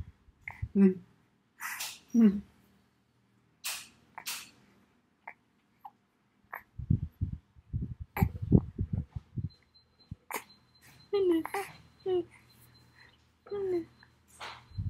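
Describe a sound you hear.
A baby coos and babbles.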